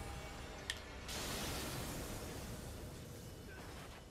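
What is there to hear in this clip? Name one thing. A magical blast bursts with a rushing whoosh.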